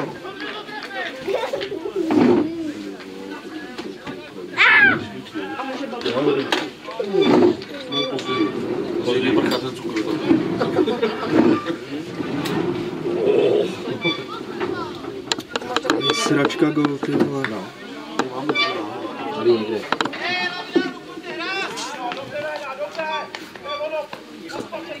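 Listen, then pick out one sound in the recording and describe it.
Players shout across an open field in the distance.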